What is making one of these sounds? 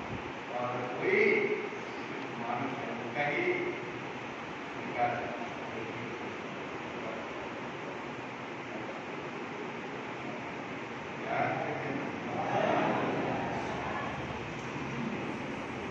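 An older man sings slowly into a microphone, heard through a loudspeaker in a room with a slight echo.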